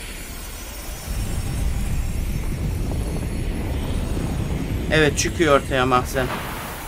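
A low magical rumble swells and swirls steadily.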